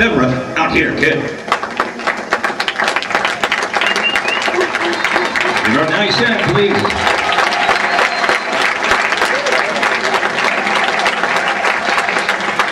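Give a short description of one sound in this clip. An audience claps and applauds in a large hall.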